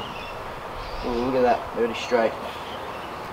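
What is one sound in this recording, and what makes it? A young man speaks nearby, calmly.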